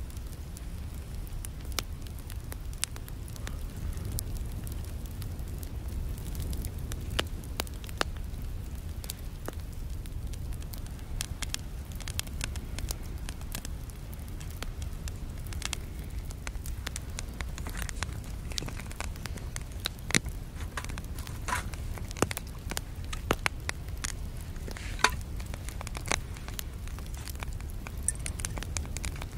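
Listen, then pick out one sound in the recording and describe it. Wind blows across open ground outdoors.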